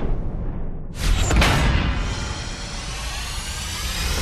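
A bright reward chime rings out and shimmers.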